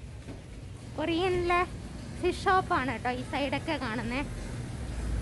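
A young woman speaks close by in a lively voice.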